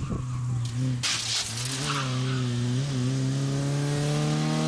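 Tyres screech on asphalt as a car slides through a bend.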